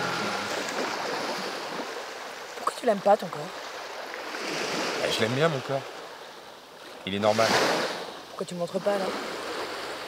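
Small waves wash softly onto a shore.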